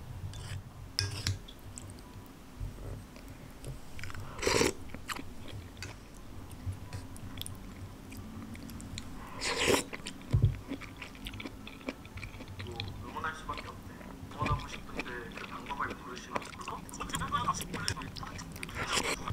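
A wooden spoon clinks and scrapes against a ceramic bowl of soup.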